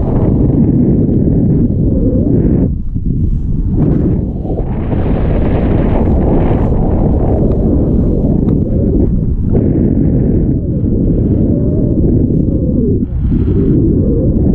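Wind roars loudly across a microphone outdoors.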